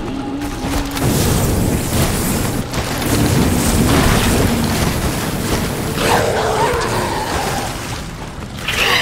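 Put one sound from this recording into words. A flamethrower roars in bursts of fire.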